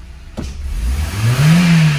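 A car engine revs up briefly.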